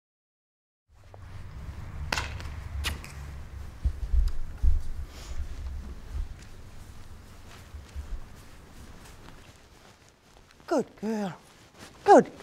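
Hooves thud softly on sand.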